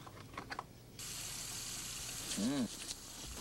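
A toothbrush scrubs briskly against teeth.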